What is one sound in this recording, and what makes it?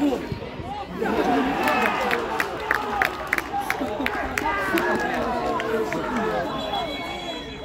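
Men talk and call out close by on the sideline.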